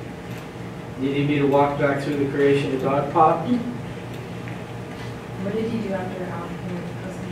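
An older man speaks calmly in a large room, in short bursts.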